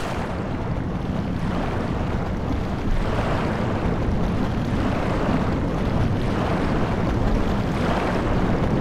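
Water churns in a deep, steady underwater rumble.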